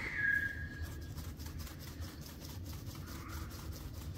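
Seasoning rattles out of a shaker onto meat.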